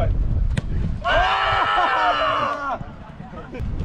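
Men call out to each other during play.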